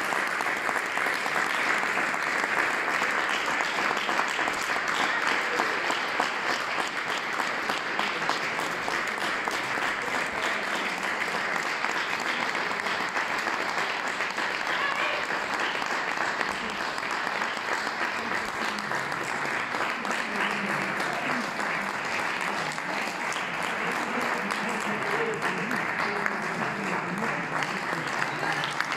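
An audience applauds steadily in a hall.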